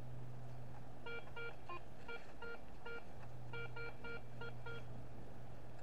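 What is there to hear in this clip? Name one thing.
A metal detector beeps in quick repeated tones.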